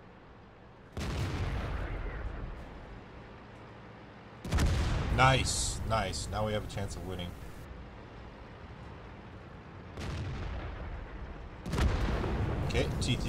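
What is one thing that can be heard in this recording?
A tank cannon fires with a deep, heavy boom.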